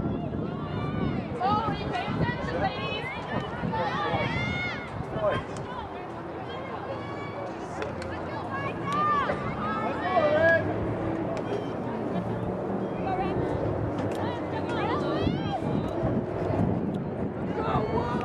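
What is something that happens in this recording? Young women shout and call to each other outdoors across an open field.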